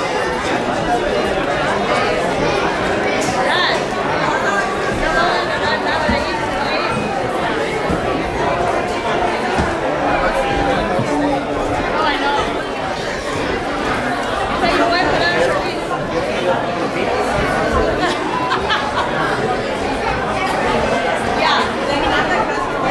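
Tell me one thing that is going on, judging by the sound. A crowd of men and women chatter loudly in an echoing hall.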